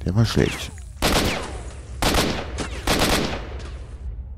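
Rifle shots ring out in short bursts.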